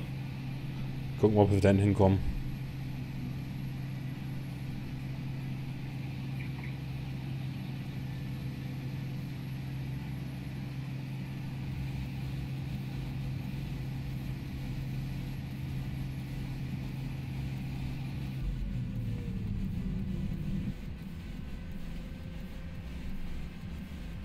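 A combine harvester engine drones steadily.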